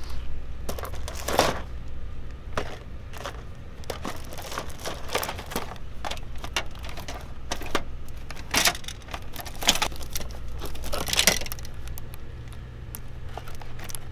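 Cardboard boxes rustle and tap as a hand takes them from a shelf.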